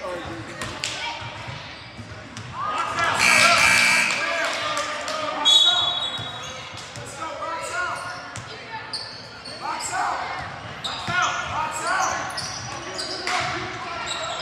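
Young players and spectators shout and call out in a large echoing gym.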